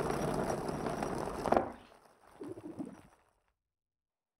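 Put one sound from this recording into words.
Small feet scurry across a hard floor.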